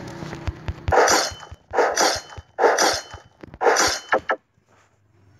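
A rifle fires loud shots in short bursts.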